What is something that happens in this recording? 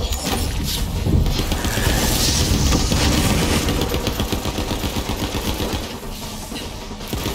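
An energy blast whooshes and crackles.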